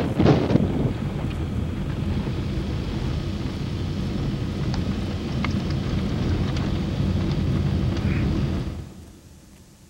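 A car engine hums as it drives along.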